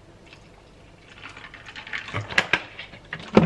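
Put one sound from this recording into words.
A plastic water jug crinkles and creaks as its cap is twisted open.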